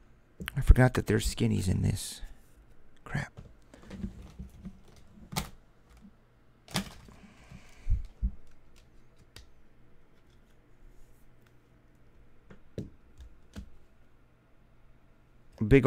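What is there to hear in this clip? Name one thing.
Cards and plastic wrappers rustle and crinkle in hands.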